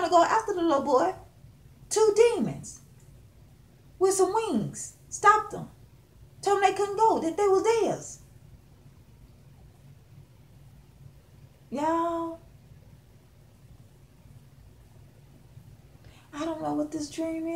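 A woman speaks close up with animation, pausing between phrases.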